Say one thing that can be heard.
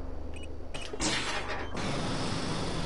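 An airlock hisses loudly as it cycles.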